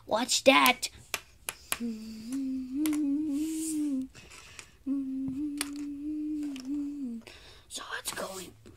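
Small plastic toy figures tap and knock against a table.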